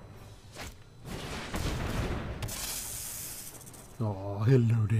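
A magical whoosh sweeps through.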